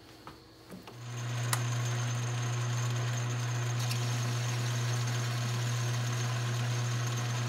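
A lathe motor hums steadily as the chuck spins.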